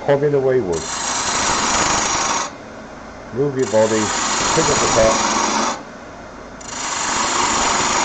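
A wood lathe hums steadily.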